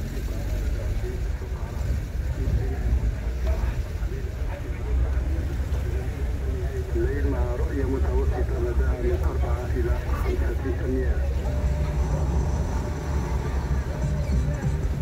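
A car engine rumbles steadily while driving slowly.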